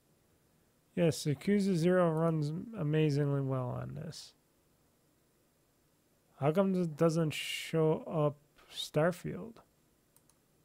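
A man talks calmly and close to a microphone.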